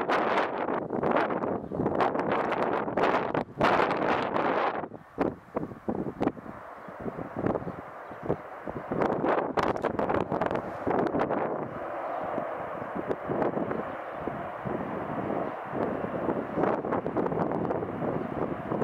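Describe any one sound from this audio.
A propeller plane's engines roar as it taxis closer.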